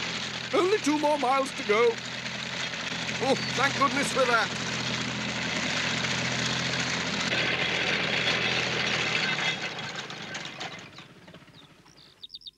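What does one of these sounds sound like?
A tractor engine chugs steadily, then fades away.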